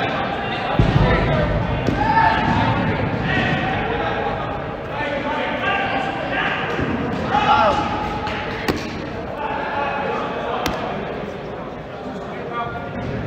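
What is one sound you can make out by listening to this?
Men shout and call out, echoing in a large hall.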